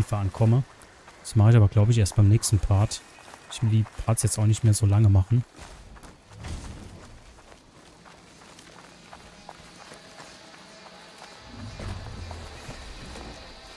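Footsteps rustle through dense leaves and undergrowth.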